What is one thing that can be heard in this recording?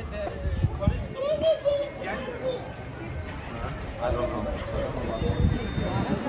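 Young men talk nearby as they walk past.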